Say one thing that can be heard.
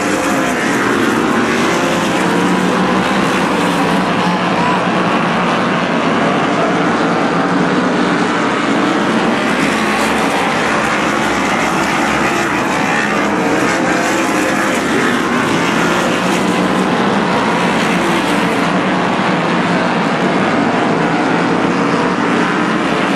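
Race car engines roar loudly as the cars speed around the track.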